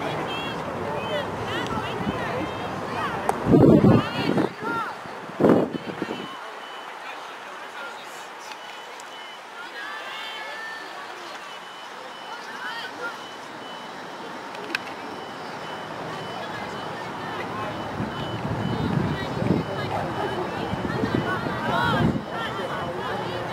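Young women shout and call out across an open outdoor field.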